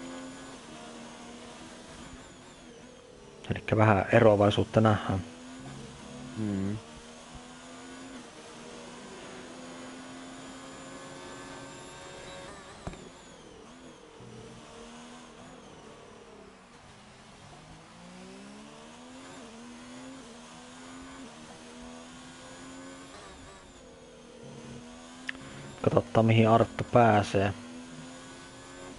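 A racing car engine whines and revs up and down through the gears.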